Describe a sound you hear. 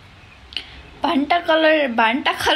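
A young woman speaks close to a phone microphone in a lively, singsong voice.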